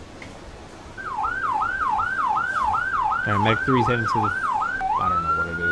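An ambulance siren yelps rapidly.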